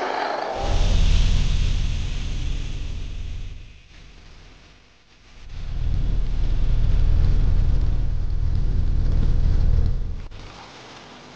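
A deep magical rumble roars loudly, then fades.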